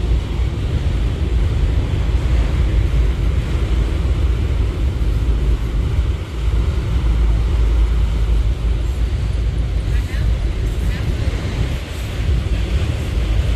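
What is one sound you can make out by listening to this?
A long freight train rumbles steadily past on the rails.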